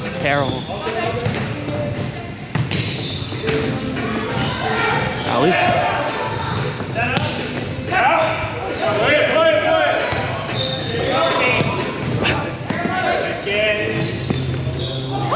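Men and women call out and shout to each other in a large echoing gym.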